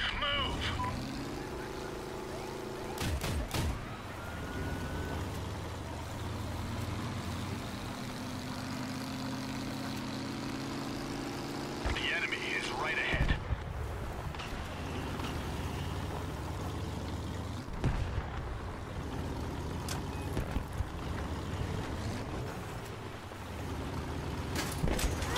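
A heavy armoured vehicle's engine rumbles steadily as it drives.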